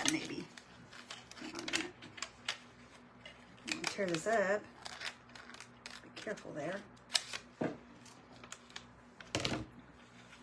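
Scissors snip through paper close by.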